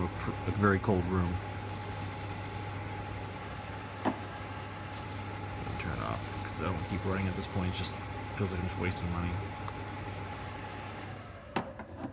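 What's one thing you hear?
A gas fire hums steadily with a low drone.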